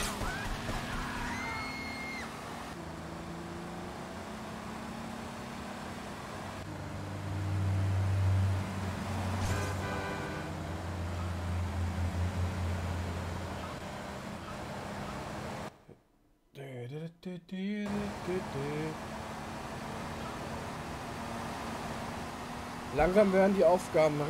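A car engine hums steadily as a taxi drives along.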